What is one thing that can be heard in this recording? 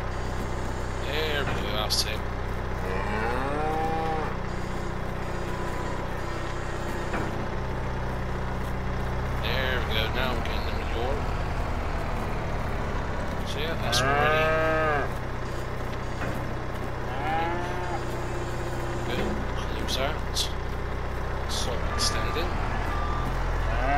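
A loader's diesel engine hums steadily.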